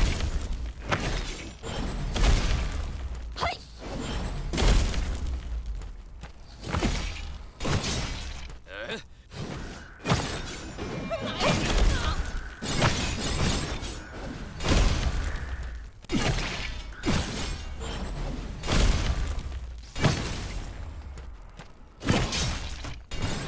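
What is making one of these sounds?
A man speaks into a microphone now and then.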